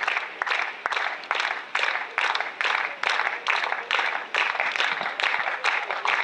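People in a crowd clap their hands in a steady beat.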